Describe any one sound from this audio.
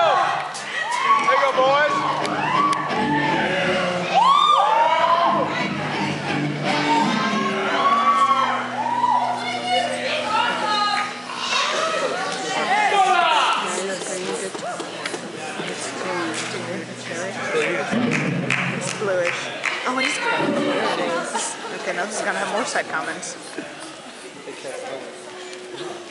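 A young man talks with animation through a loudspeaker in a large hall.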